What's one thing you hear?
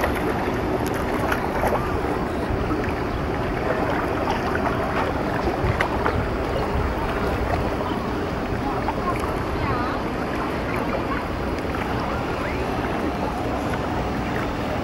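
Water laps gently in a harbour, outdoors.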